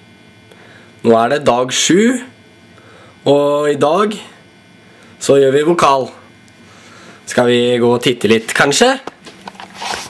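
A young man speaks close up, in short bursts.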